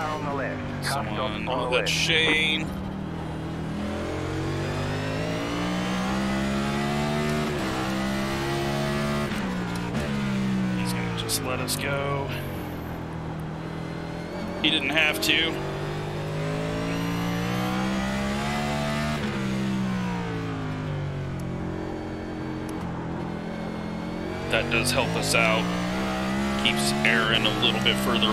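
A race car engine roars, revving up and down as gears shift.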